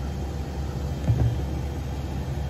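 A plastic bin thumps against a garbage truck's hopper.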